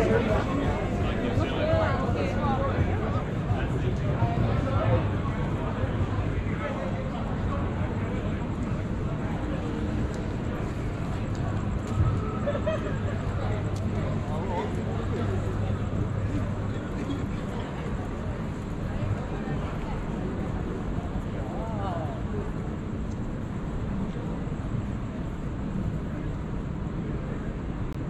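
Distant city traffic hums steadily.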